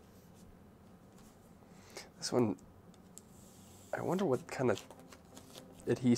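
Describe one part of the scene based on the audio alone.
A sticker's backing peels off with a soft crackle.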